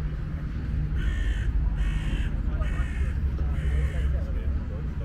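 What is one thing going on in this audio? A seagull cries overhead.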